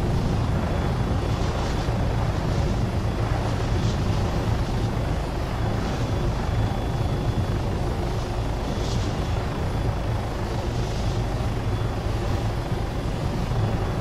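A helicopter engine and rotor drone from inside the cabin in flight.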